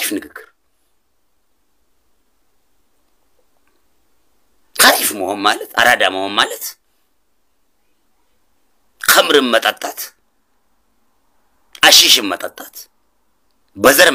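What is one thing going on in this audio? A man speaks close to a microphone in short phrases with pauses.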